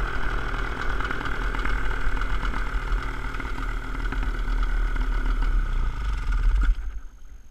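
A small propeller engine drones steadily close by and cuts out near the end.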